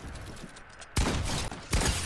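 A gunshot cracks in a video game.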